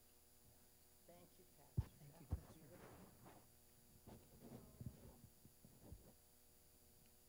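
A woman speaks quietly into a microphone.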